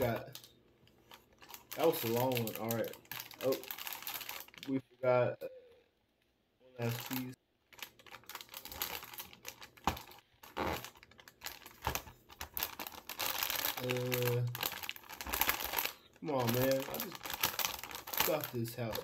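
Paper crinkles and rustles as a young man handles a paper box.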